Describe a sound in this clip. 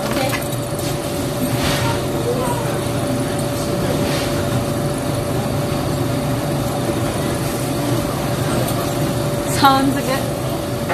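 People chatter quietly in the background.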